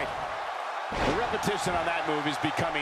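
A body slams heavily onto a wrestling ring mat.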